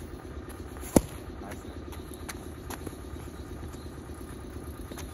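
Punches from boxing gloves smack on focus mitts outdoors.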